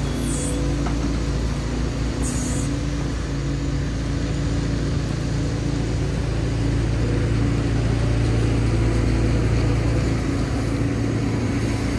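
An excavator's bucket scrapes and dumps gravel.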